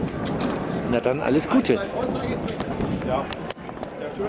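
Harness chains jingle as a horse moves its head.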